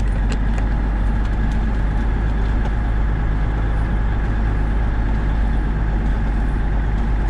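A heavy diesel engine rumbles steadily from inside a vehicle cab.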